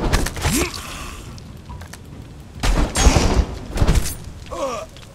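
Heavy weapons strike and thud in a fight.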